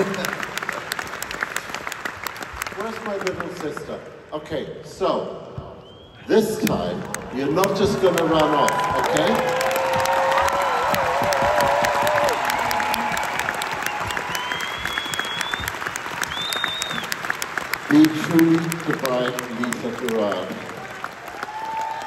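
An orchestra plays in a large echoing hall.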